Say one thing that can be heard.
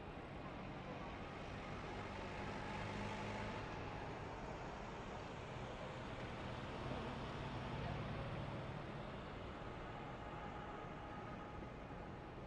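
Wind roars past the truck at high speed.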